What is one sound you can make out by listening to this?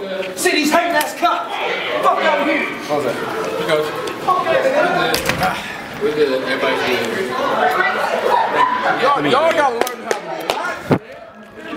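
Several men talk and call out at once.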